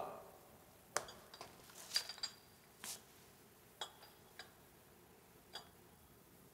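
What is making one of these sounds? A man thumps down onto stone steps.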